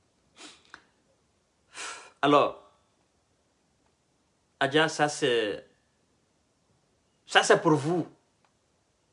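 A man speaks calmly into a microphone close by, in short phrases with pauses.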